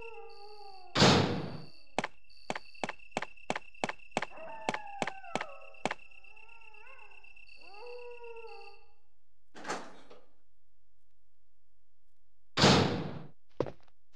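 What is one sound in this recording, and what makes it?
A heavy door thuds shut.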